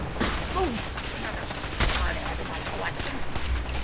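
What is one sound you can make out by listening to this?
Laser guns fire in sharp bursts.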